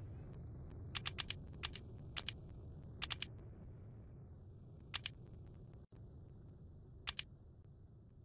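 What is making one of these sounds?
Soft clicks sound as menus open.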